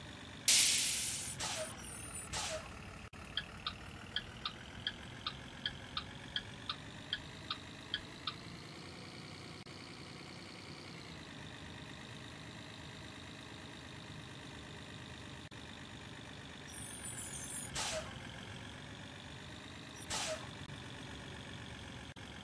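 A bus engine hums steadily as it drives.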